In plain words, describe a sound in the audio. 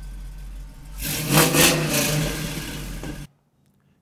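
A car engine revs loudly once and then drops back.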